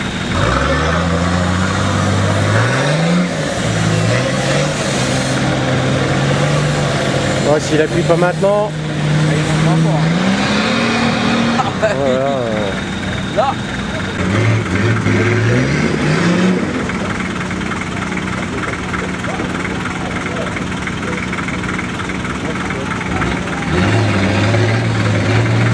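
An engine revs hard, rising and falling as an off-road vehicle climbs.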